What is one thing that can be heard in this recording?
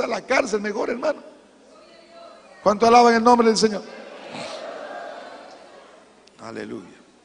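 A middle-aged man speaks with animation into a microphone, in a reverberant hall.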